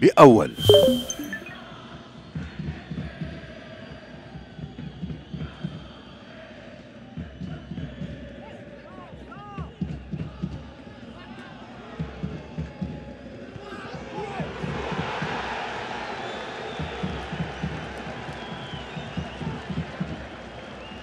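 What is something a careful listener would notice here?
A crowd cheers and murmurs in a large outdoor stadium.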